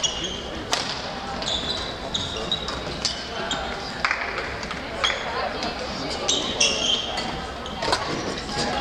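Sports shoes squeak sharply on a hard court.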